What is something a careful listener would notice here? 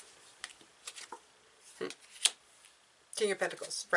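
A card is laid down with a soft tap.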